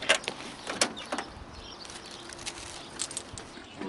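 A truck door creaks open.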